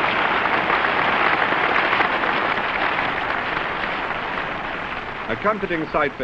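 Applause rings out across an open ground and slowly fades.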